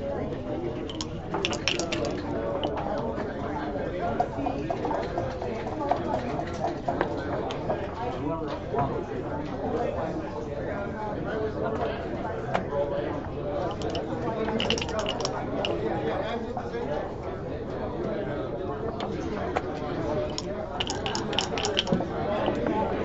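Dice rattle and clatter across a board.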